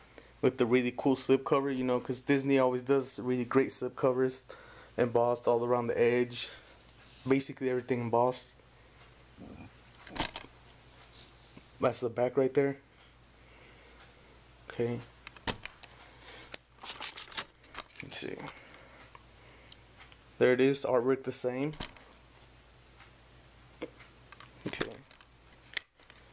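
A plastic case rattles and taps as hands handle it.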